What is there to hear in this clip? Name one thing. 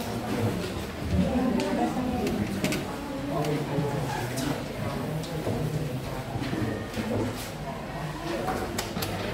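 Students murmur and chatter in the background.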